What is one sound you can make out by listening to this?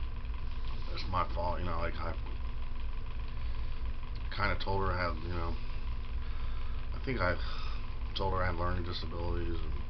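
A middle-aged man speaks calmly in short bursts close to the microphone.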